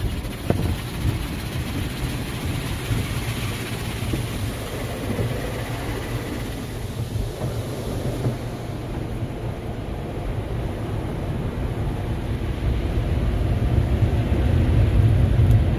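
Water sprays and splashes against a car's windows.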